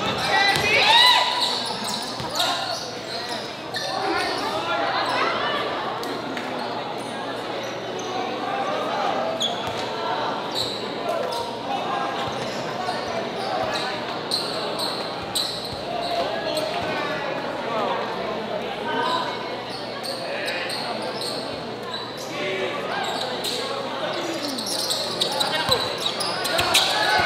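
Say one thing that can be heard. A large crowd cheers and chatters in an echoing indoor hall.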